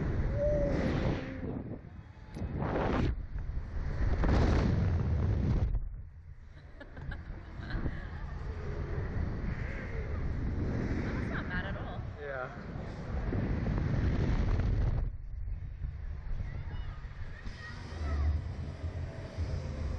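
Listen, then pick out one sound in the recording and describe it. A young woman laughs and screams close by.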